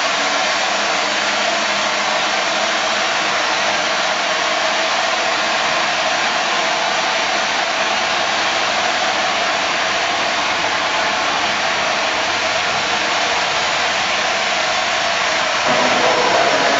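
A steam locomotive hisses loudly as it pulls slowly away.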